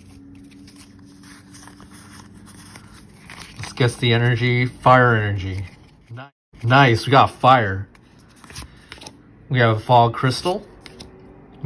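Cards rustle and flick softly as they are shuffled through.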